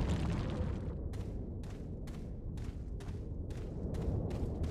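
Footsteps crunch on the ground at a walk.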